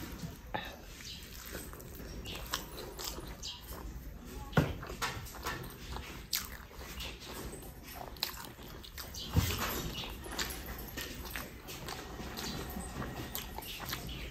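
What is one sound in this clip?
A young man chews food with wet smacking sounds, close up.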